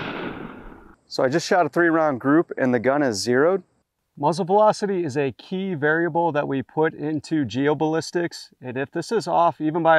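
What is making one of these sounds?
A man talks calmly and clearly close by.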